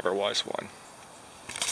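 A man speaks quietly and close by.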